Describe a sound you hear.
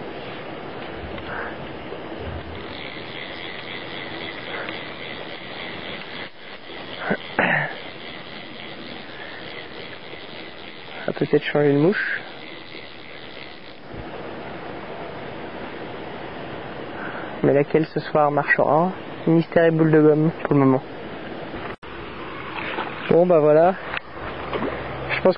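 Water in a shallow stream trickles softly.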